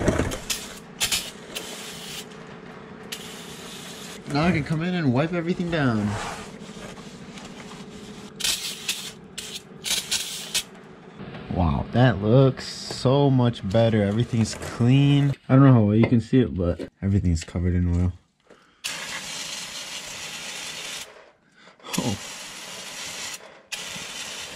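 An aerosol can sprays with a sharp hiss in short bursts.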